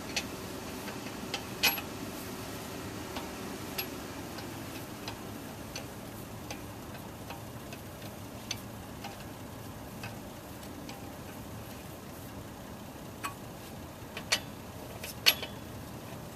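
A metal lug wrench clicks and clanks against the wheel nuts.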